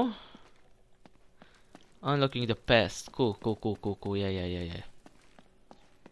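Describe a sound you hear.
Footsteps patter quickly up stone steps.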